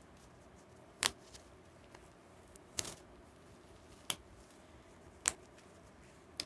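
Rubber gloves snap and rustle against the hands.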